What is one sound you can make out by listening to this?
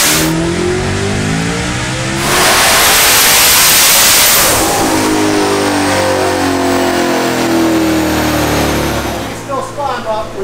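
A car engine revs hard and roars, then winds down.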